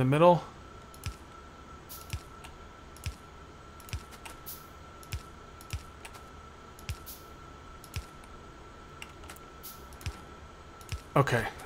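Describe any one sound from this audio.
Short clicks sound again and again as machines are placed.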